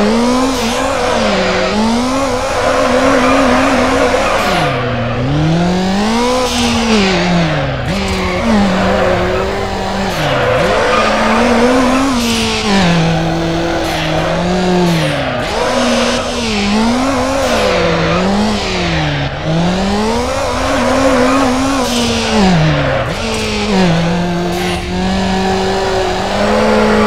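A car engine revs up and down as the car drifts.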